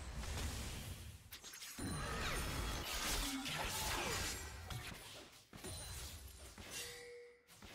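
Game characters' weapons clash and strike.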